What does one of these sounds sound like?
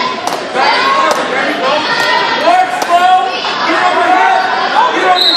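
Several adults shout encouragement loudly in a large echoing gym.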